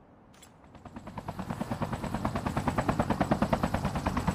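A helicopter's rotor thumps loudly and quickly.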